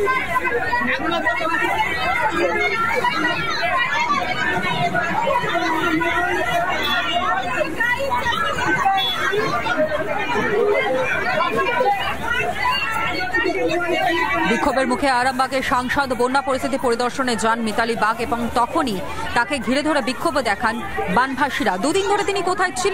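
A woman speaks with agitation close by.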